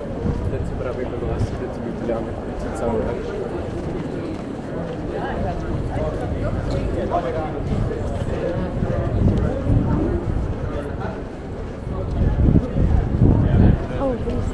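Footsteps tap on paving stones close by.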